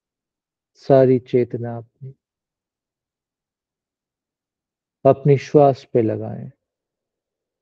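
A middle-aged man speaks calmly through a microphone, as if on an online call.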